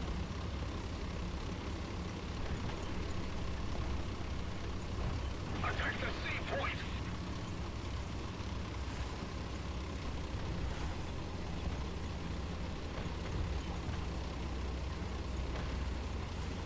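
Tank tracks clank over the ground.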